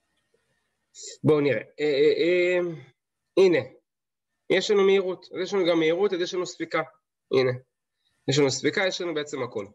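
A man speaks calmly into a microphone, as if over an online call.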